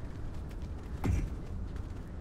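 A short interface click sounds.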